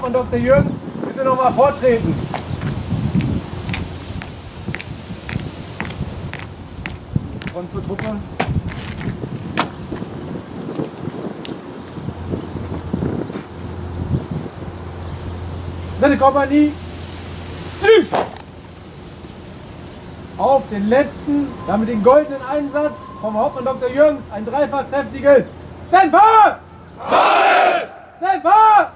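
A man shouts commands loudly outdoors.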